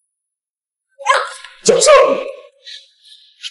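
A young woman cries out in pain close by.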